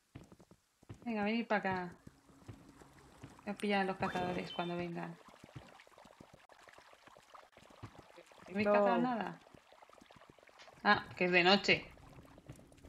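A young woman talks with animation into a microphone, in short bursts.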